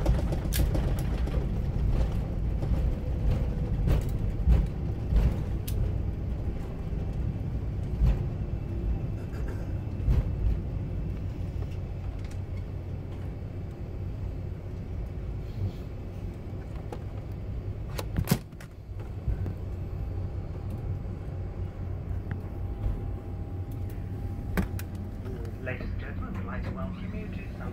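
A plane's engines roar steadily from inside the cabin.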